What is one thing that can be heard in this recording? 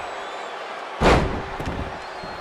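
A body slams down onto a wrestling mat with a heavy thud.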